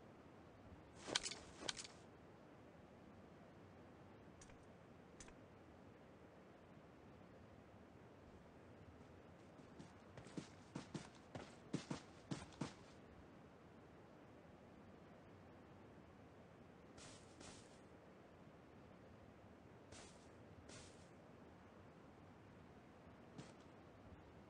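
Footsteps rustle through tall grass in short bursts.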